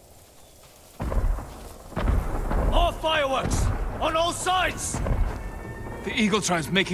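Fireworks whistle and burst overhead.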